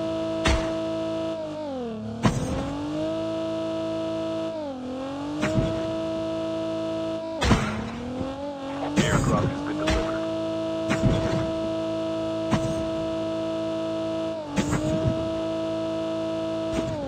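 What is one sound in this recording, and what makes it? A car engine hums steadily and dips in pitch now and then.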